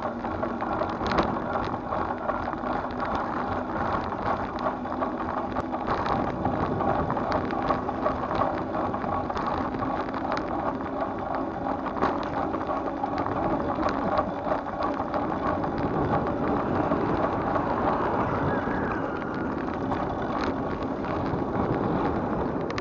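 A bicycle rattles and clicks as it rolls along a road.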